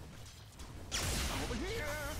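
Game sound effects of magic spells burst and crackle.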